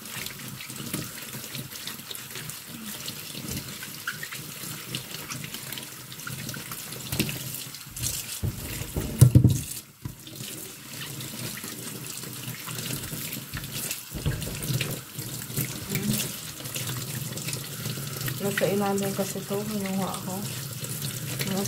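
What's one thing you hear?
A sponge scrubs and squeaks on wet fruit skins.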